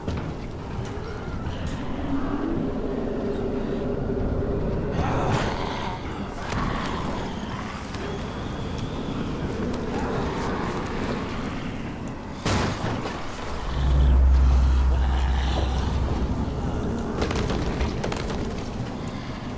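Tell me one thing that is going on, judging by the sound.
Footsteps thud on sheet metal roofs.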